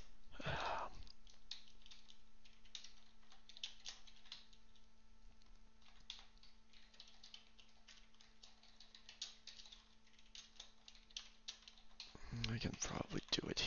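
Keys on a keyboard click in quick, uneven bursts of typing.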